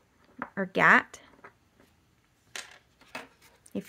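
A small plastic bottle is set down on a table with a light knock.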